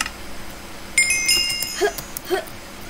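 A bright chime rings out as the game begins.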